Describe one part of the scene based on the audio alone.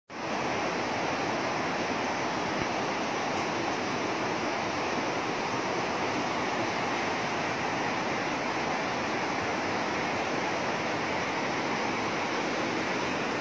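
A fast river rushes loudly over rocks.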